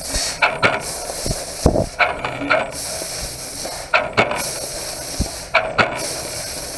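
A laser cutter hisses steadily as it cuts through metal.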